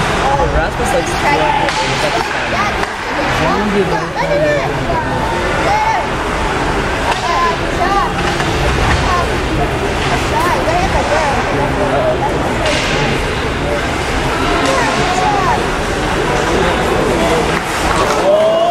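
Ice skates scrape and carve across ice in a large echoing rink.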